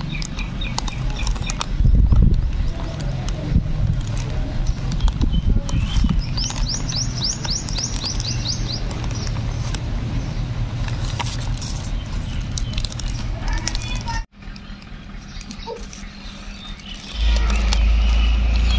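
Plastic sheeting crinkles and rustles under hands.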